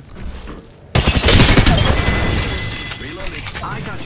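Rapid gunfire bursts loudly, close by.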